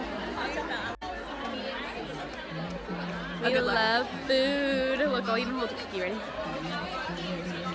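A second young woman talks and laughs close by.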